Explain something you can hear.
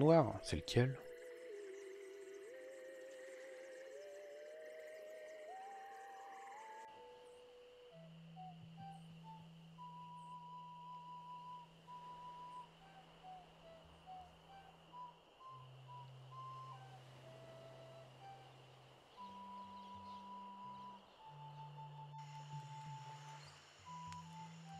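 A simple electronic tune plays with steady held notes.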